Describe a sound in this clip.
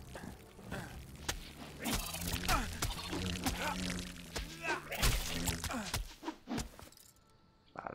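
A giant wasp buzzes loudly.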